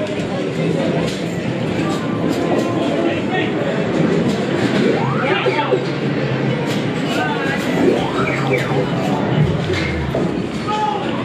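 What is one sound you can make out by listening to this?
Arcade machines play bleeping electronic sounds and tunes.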